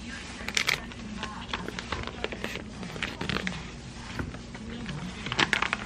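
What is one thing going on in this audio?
Paper packaging crinkles and rustles as it is handled.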